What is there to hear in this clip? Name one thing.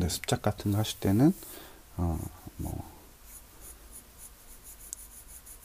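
A pencil scratches lightly across paper in short, quick strokes.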